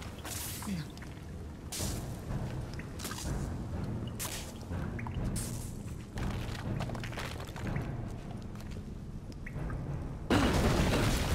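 Footsteps crunch over loose rubble.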